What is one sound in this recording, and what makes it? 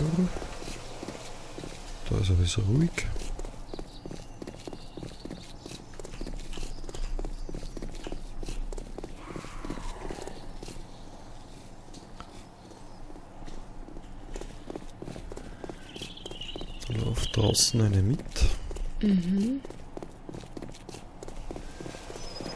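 Footsteps crunch steadily on hard, dry ground.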